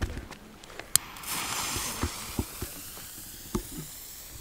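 A fuse hisses as a firework is lit.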